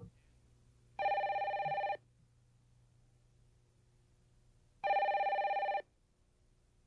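A telephone rings twice.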